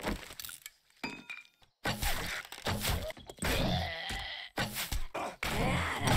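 A zombie snarls and groans up close.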